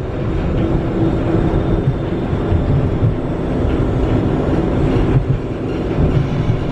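A tram rumbles steadily along the tracks, heard from inside.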